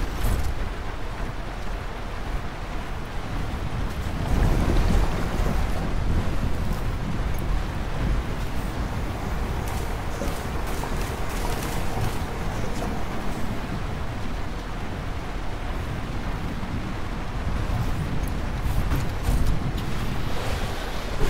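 A vehicle engine hums and rumbles steadily.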